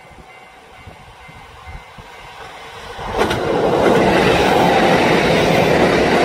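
A second train approaches and rumbles loudly past close by.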